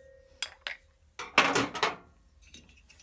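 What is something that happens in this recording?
Metal engine parts clink and knock against each other.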